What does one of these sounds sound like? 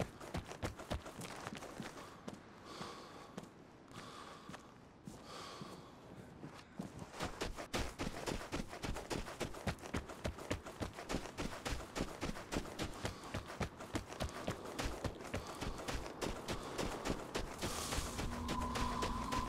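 Footsteps crunch quickly through deep snow.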